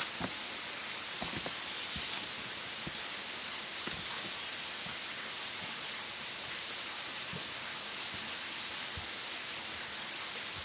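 Footsteps crunch over rocks.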